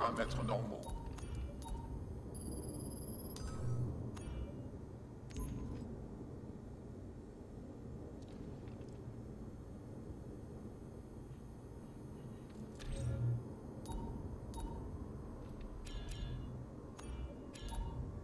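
Short electronic menu clicks and beeps sound now and then.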